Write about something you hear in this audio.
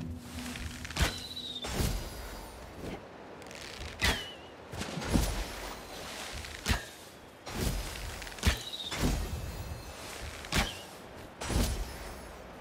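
Arrows are loosed from a bow with sharp twangs, again and again.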